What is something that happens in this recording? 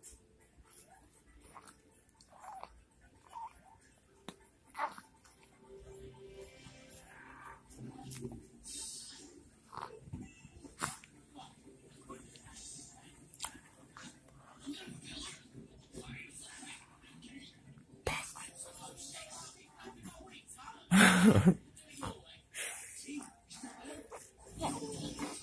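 A baby laughs close by.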